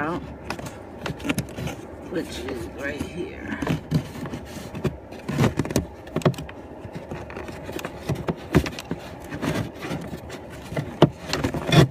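A plastic filter scrapes and clicks as it slides out.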